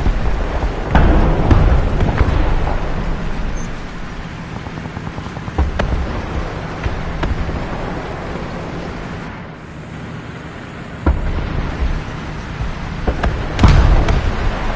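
Tank guns fire with loud booming blasts.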